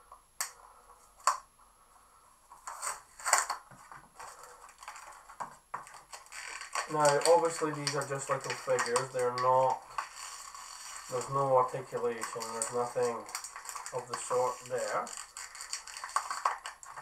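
Plastic wrapping crinkles and rustles as it is torn open.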